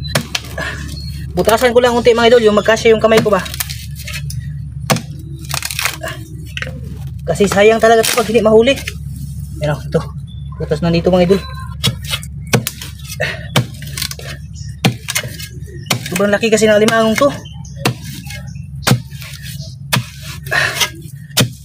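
A machete chops repeatedly into wet mud and roots.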